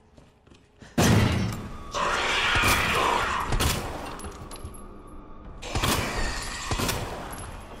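A gun fires loud shots that echo.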